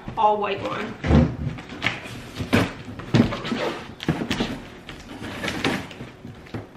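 A cardboard box scrapes and thumps as it is moved.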